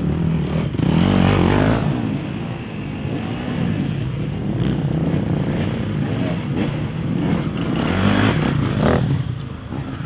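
A dirt bike's knobby tyres scrabble over rock and dirt.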